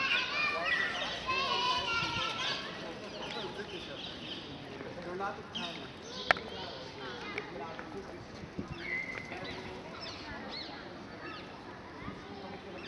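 Birds chirp and twitter overhead.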